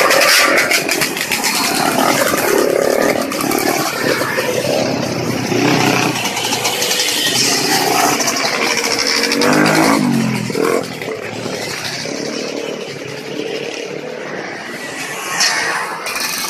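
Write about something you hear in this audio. Dirt bike engines buzz as riders pass one after another.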